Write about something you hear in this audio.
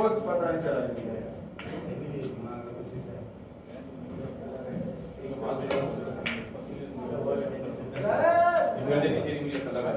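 Men talk nearby with animation.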